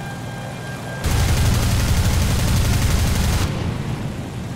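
Machine guns fire in a rapid, loud burst.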